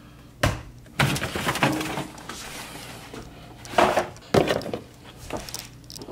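A carton of eggs rustles in a hand.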